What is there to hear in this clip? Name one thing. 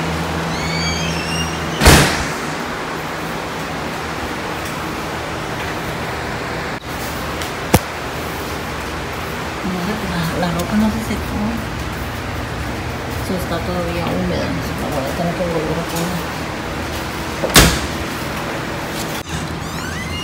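Laundry machines hum steadily.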